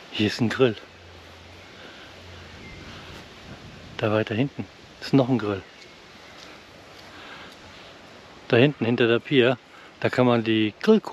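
A man speaks calmly and close to the microphone, in short bursts with pauses.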